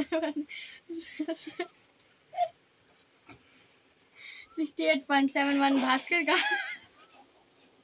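A young woman speaks and laughs excitedly close by.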